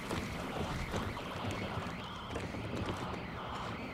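Footsteps creak on a wooden floor.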